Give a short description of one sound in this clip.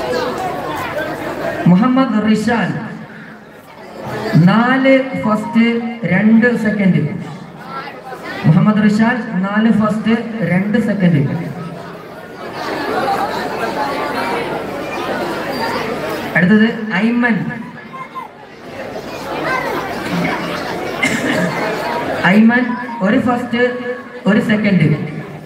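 A man chants loudly in rising and falling phrases through a loudspeaker.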